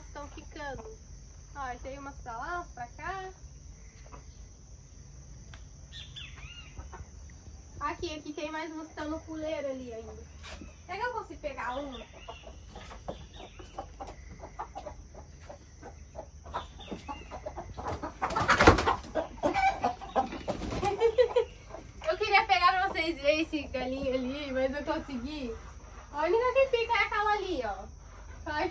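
Chickens cluck nearby.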